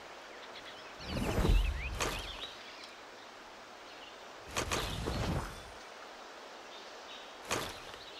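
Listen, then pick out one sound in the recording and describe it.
Leafy plants rustle as someone pushes through them.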